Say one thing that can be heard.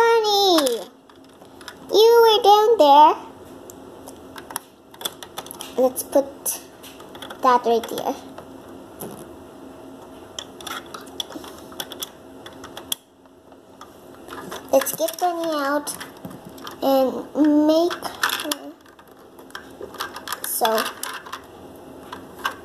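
Plastic toy bricks click and clatter as they are handled.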